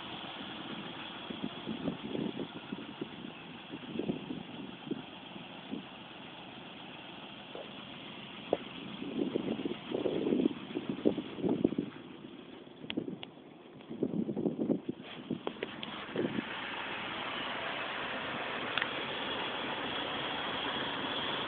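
A pickup truck's engine runs.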